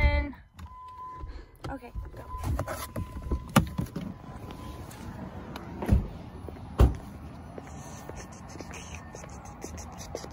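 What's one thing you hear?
A phone rubs and bumps as it is handled.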